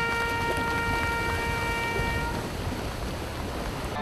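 Runners splash into shallow surf.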